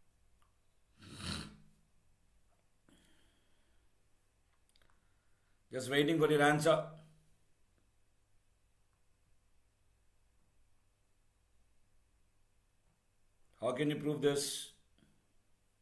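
A man speaks into a close microphone in short, calm phrases with long pauses.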